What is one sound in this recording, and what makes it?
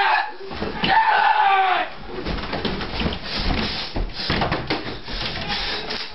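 A mattress thumps and slides against a bed frame.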